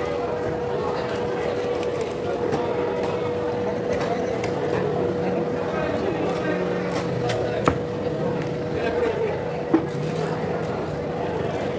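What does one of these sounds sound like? A crowd murmurs and chatters in a busy market hall.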